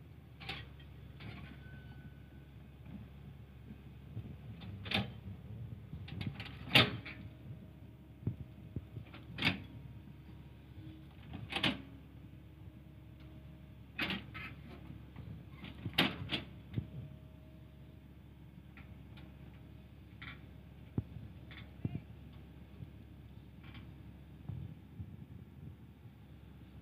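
A diesel tracked excavator engine rumbles as the machine crawls.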